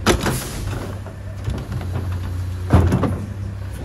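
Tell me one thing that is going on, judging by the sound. A plastic bin bangs against a truck's hopper.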